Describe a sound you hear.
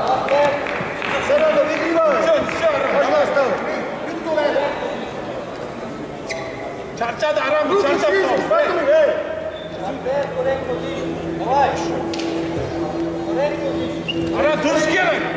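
Shoes squeak sharply on a rubber mat as wrestlers shuffle around.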